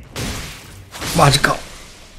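A blade slashes into flesh with a wet hit.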